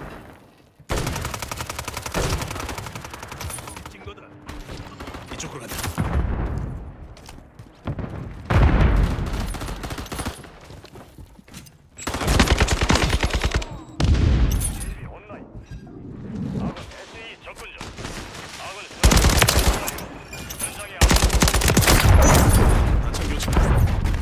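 Rapid gunfire rattles in short, loud bursts.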